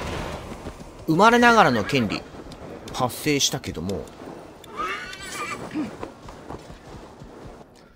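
A horse's hooves crunch slowly through snow.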